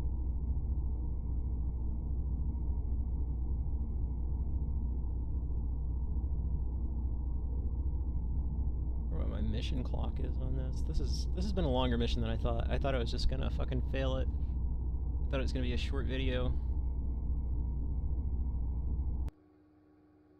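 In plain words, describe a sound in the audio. A spacecraft's engine hums low and steadily.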